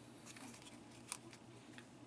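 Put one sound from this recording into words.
A small brush taps and swishes in a pot of water.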